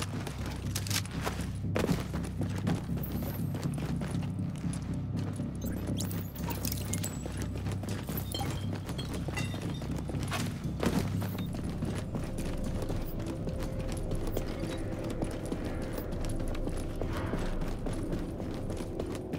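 Footsteps tread on a hard floor.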